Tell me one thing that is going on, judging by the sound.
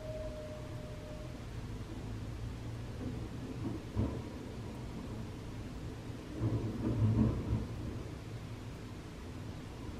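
Distant city traffic hums low and steadily.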